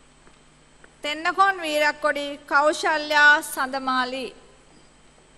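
A young woman speaks briefly and cheerfully nearby.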